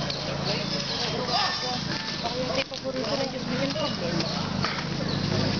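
Women talk and chatter nearby outdoors.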